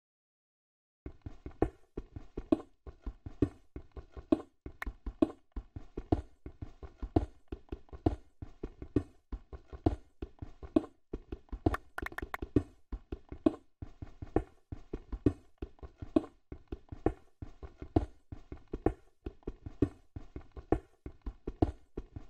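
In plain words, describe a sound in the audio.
A pickaxe chips rapidly at stone blocks, over and over.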